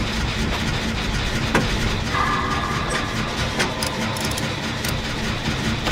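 A generator's machinery rattles while being repaired by hand.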